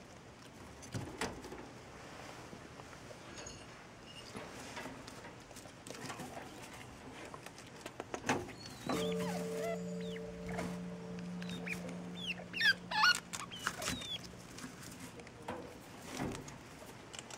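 A wire cage rattles and clinks.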